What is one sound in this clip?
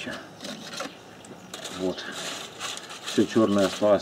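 Aluminium foil crinkles and rustles as hands pull it away.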